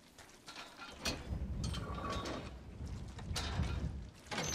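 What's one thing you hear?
A metal bolt slides and clanks.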